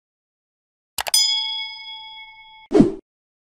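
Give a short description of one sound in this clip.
A bell chimes brightly and slowly fades.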